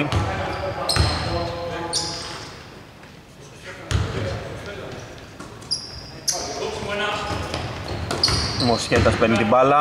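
A basketball thuds as it is dribbled on the court.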